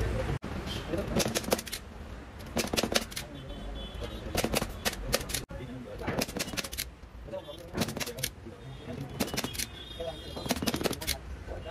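A staple gun fires staples into wood in quick bursts.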